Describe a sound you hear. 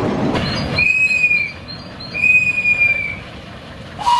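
A steam locomotive whistle blows twice in short blasts.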